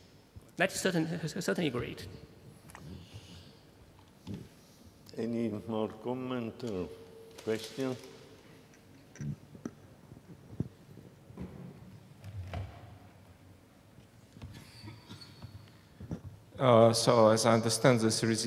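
A man speaks into a microphone in a large hall, pausing between phrases.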